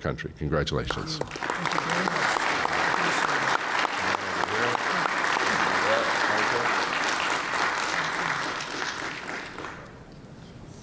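A crowd applauds in a large hall.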